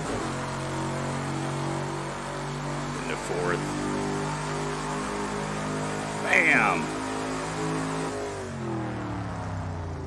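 A racing car engine drones steadily at high revs, shifting pitch with gear changes.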